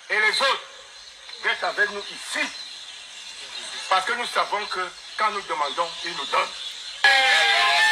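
A man speaks with animation through a small phone speaker.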